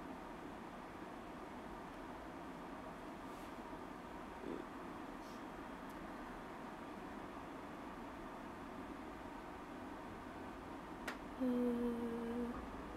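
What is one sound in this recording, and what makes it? A young woman speaks softly and calmly close by.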